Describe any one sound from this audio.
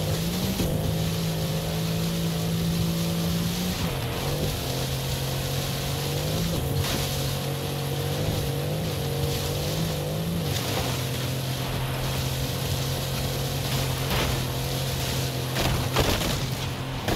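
A car engine drones at high revs, shifting gear now and then.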